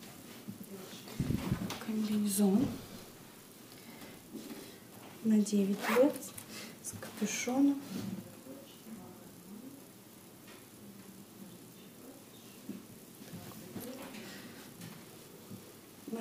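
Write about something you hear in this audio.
Fleece clothing rustles as it is handled and laid down.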